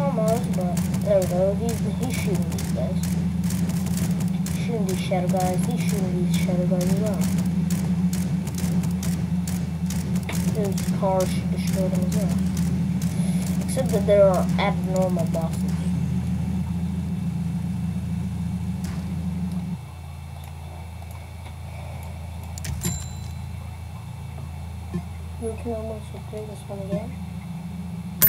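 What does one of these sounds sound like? A boy talks with animation into a nearby microphone.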